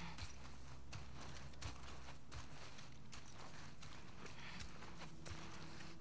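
Tall grass rustles and swishes as someone pushes through it.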